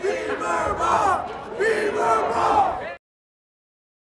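A young man speaks excitedly close by.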